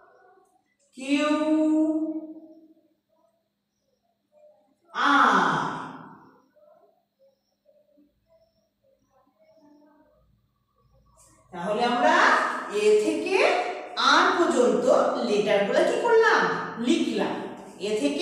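A young woman speaks clearly and animatedly, close to the microphone.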